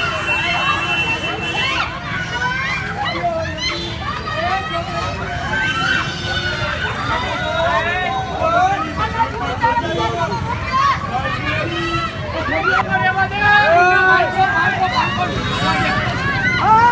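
A crowd of men and women shout and argue loudly outdoors.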